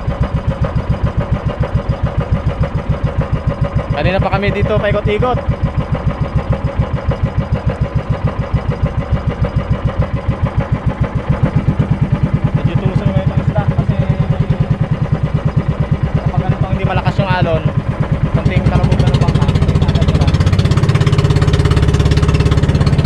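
A small boat engine chugs loudly and steadily.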